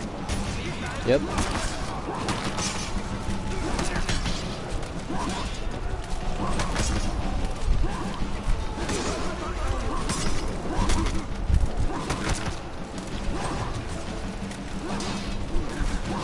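Swords clash and strike in a noisy battle.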